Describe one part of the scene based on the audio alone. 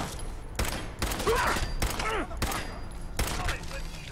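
A gun fires several shots in quick succession.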